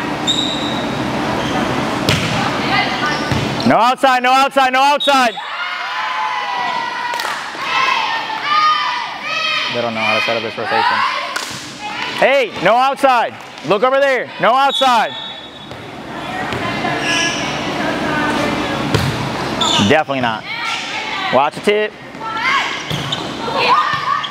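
Players shout and call out to each other in an echoing hall.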